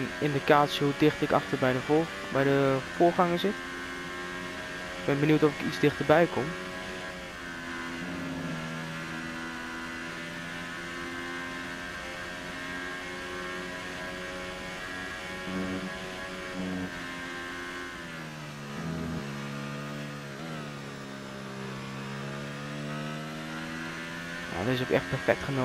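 A Formula One car engine screams at high revs.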